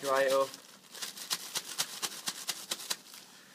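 A metal scoop scrapes and rattles through dry grain.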